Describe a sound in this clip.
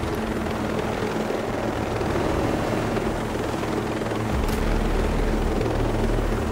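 A helicopter's rotor thumps steadily as it flies close by.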